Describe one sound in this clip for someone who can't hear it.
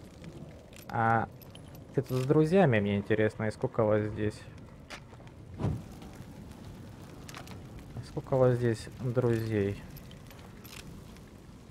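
A fire crackles nearby.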